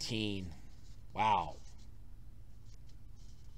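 Paper rustles softly.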